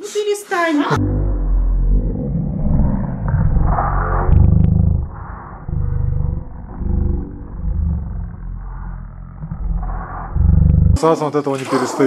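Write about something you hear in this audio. A small dog growls and snarls.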